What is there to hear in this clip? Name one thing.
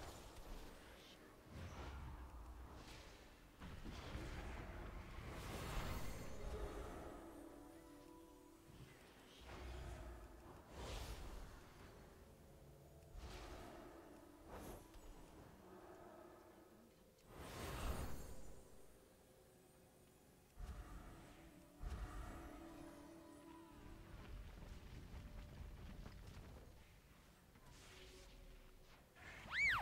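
Fantasy battle sounds of spells and blows burst and fade again and again.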